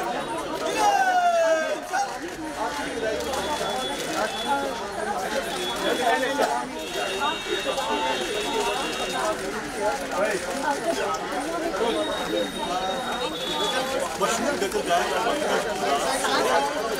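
A large crowd murmurs and talks all around, outdoors.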